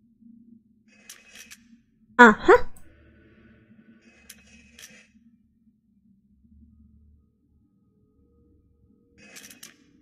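Metal dials click and clank as they turn.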